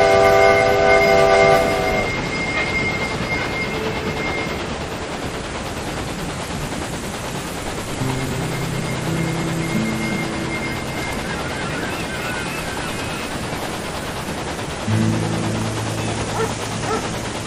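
A steam locomotive rumbles steadily along the rails.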